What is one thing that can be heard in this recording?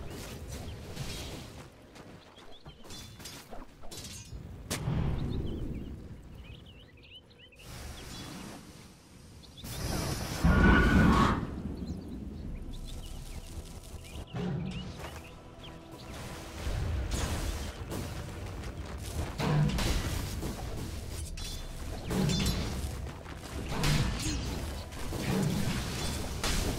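Fiery spell effects whoosh and crackle in a game.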